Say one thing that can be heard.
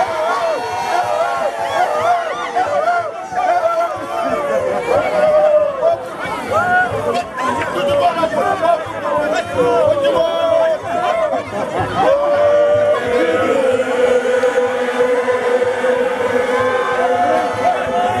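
A large crowd of men and women shouts and chatters outdoors nearby.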